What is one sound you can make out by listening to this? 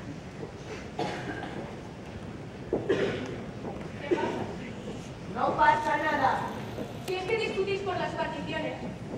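A woman speaks with animation, heard from a distance in a large room.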